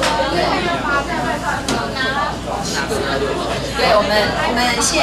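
A woman talks steadily into a microphone, close by.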